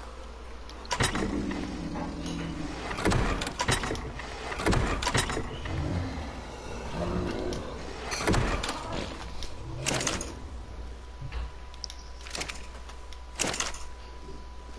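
A soft whoosh sounds each time an inventory menu opens and closes.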